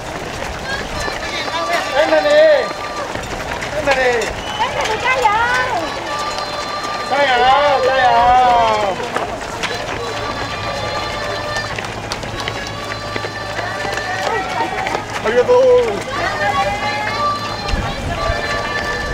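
Spectators close by cheer and shout encouragement loudly.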